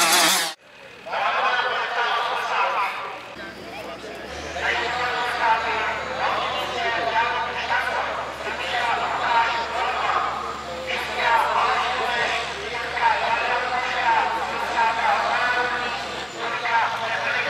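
A man speaks with animation over a loudspeaker outdoors.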